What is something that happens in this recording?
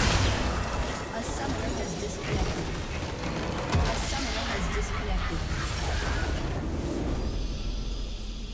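Game spell effects crash and whoosh in a dense battle.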